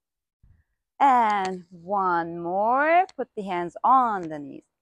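A young woman speaks calmly and melodically, close to a microphone.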